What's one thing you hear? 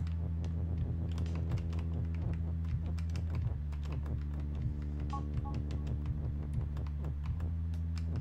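Short clicking blips sound in quick succession as game pieces move.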